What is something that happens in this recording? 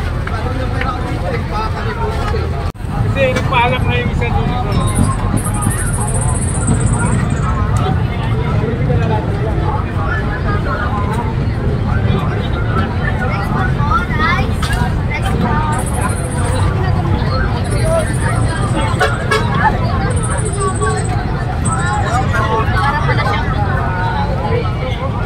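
A crowd of people chatters loudly all around.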